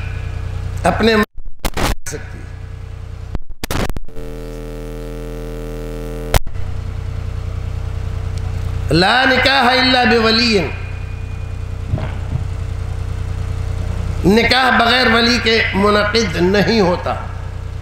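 An elderly man speaks with feeling into a microphone, heard through a loudspeaker.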